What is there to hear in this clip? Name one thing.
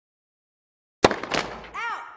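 A tennis racket strikes a ball on a serve.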